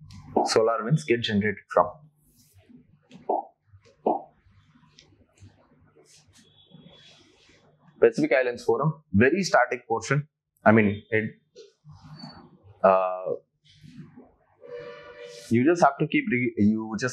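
A young man lectures calmly into a close microphone, with pauses.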